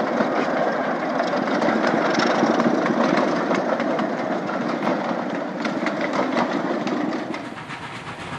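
A train's carriages rumble and clatter along the rails in the distance.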